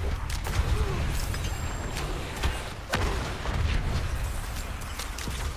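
Game combat sounds of spells and blows clash and crackle rapidly.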